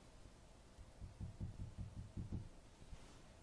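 Low muffled thumps come from a handheld game console being handled close by.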